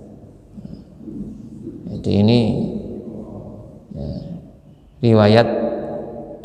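A middle-aged man reads aloud into a microphone in a slow, chanting voice, with a slight echo in the room.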